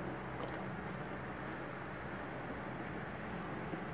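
Water pours in a thin stream into a basin.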